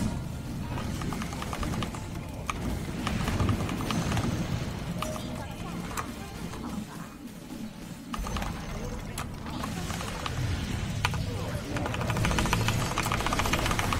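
Game spell effects crackle and clash.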